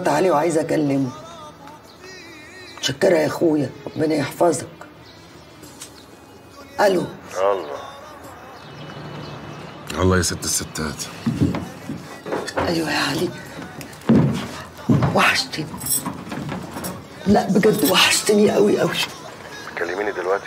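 A woman speaks on the phone in an urgent, emotional tone.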